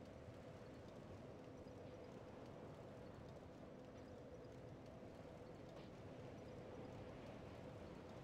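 Soft menu clicks tick as a selection cursor moves.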